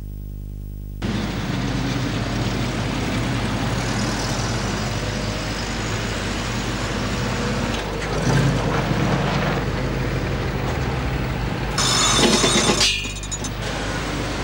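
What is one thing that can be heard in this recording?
Traffic rolls past steadily on a nearby road.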